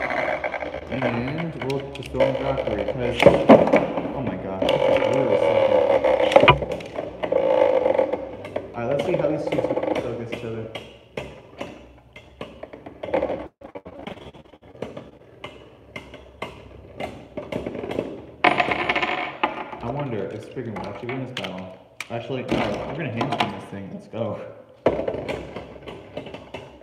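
Spinning tops clash and clack against each other.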